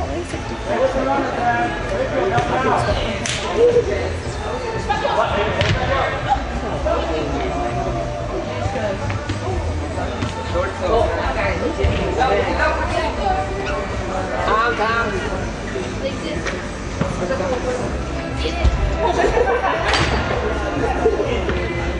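Young players and spectators shout and call out in an echoing indoor arena.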